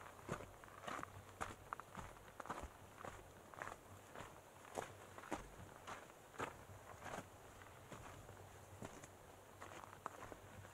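Footsteps crunch steadily on a dirt and gravel trail.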